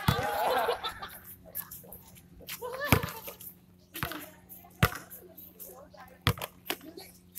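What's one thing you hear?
A basketball bounces sharply on a hard outdoor court.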